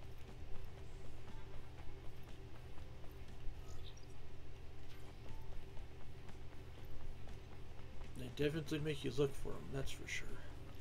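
Footsteps run over dirt ground.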